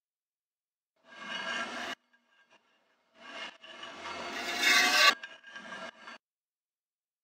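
Heavy metal rings grind and clank as they turn.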